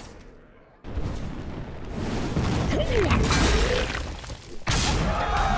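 A fire spell bursts with a blast.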